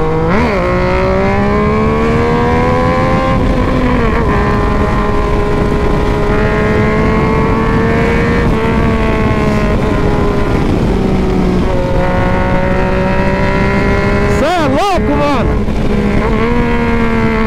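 A motorcycle engine drones steadily, its pitch rising and falling with gear changes.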